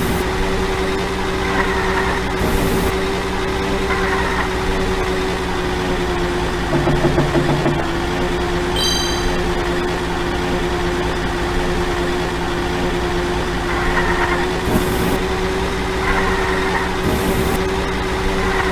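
A kart engine hums steadily as it races along.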